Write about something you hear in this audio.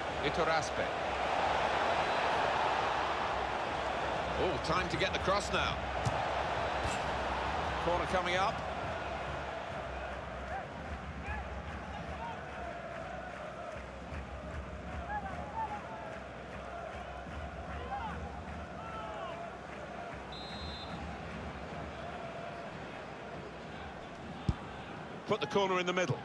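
A large stadium crowd roars and cheers, loudest at first and then settling to a steady murmur.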